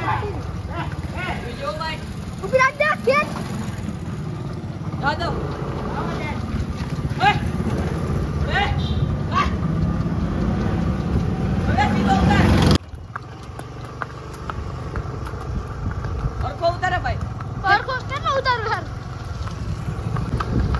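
Horse hooves clop on a paved street.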